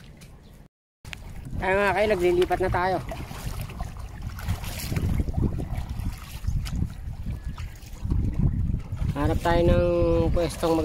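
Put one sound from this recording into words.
Water laps against the side of a small boat.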